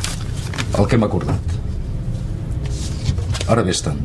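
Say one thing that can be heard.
Paper rustles as an envelope is handled.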